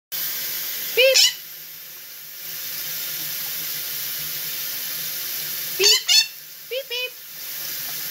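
A parrot squawks in short, sharp bursts close by.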